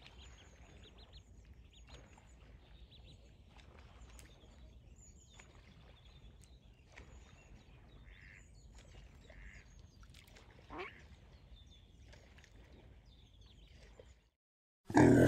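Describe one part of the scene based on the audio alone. Ducklings peep softly.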